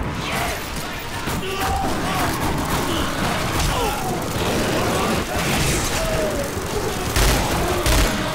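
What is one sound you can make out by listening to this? A whip-like tendril lashes through the air and strikes with heavy, wet thuds.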